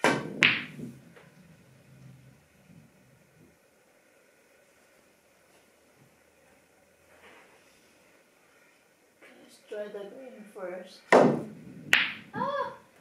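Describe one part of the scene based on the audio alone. Billiard balls knock together and thud against a cushion.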